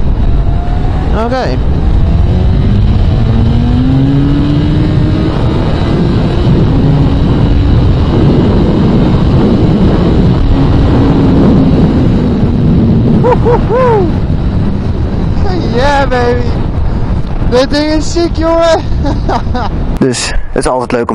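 A motorcycle engine roars steadily at highway speed.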